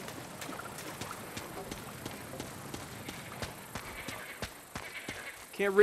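Footsteps run over grass and leaves.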